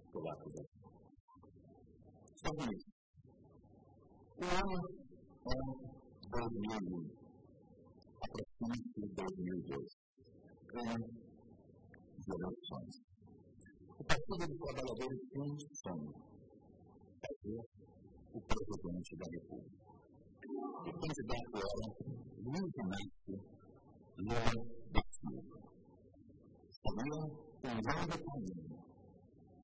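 A man speaks calmly and formally into a microphone.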